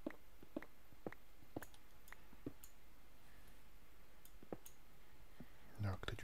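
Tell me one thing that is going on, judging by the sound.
Stone blocks crumble and break.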